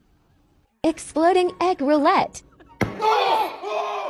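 An egg bursts with a sharp pop.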